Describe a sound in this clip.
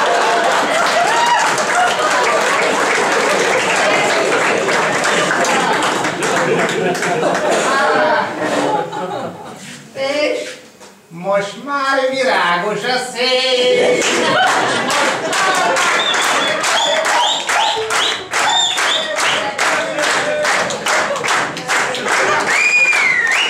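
A large crowd laughs and chatters loudly in an echoing hall.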